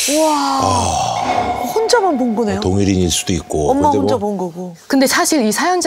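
A man exclaims loudly in shock.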